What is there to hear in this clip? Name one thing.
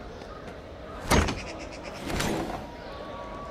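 A heavy metal safe door clanks open.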